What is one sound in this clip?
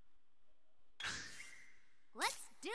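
A swift whoosh sweeps past.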